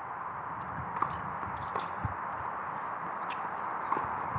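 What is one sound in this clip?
A tennis ball is struck with a racket with sharp pops.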